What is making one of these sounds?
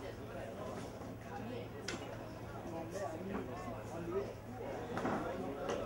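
Men talk quietly outdoors at a distance.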